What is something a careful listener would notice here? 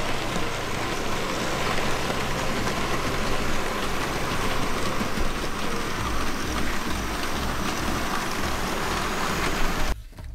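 Model trains rumble and clatter steadily along the tracks.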